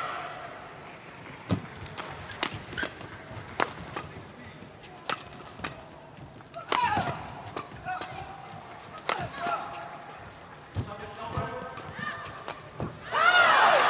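Rackets smack a shuttlecock back and forth in a quick rally.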